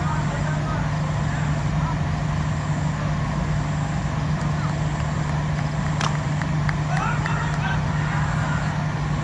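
Men call out to each other from a distance outdoors.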